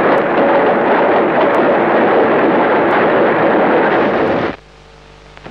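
A train rushes past with a loud roar.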